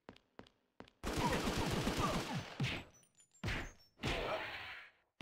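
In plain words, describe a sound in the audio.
Punches and blows land in a rough scuffle.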